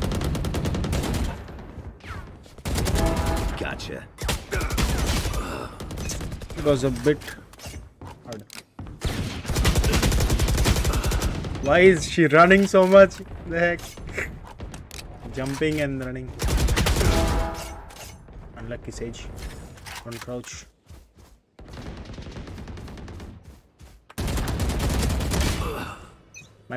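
Rapid gunfire bursts loudly in repeated volleys.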